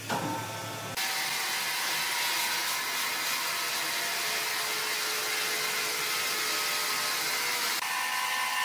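A large band saw whirs loudly as it cuts through a log.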